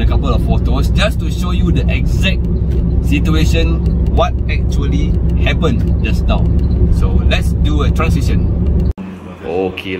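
A car engine hums with steady road noise inside a moving car.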